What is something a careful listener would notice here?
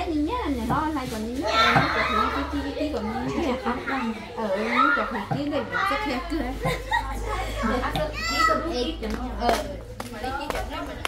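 Several women chat with animation close by.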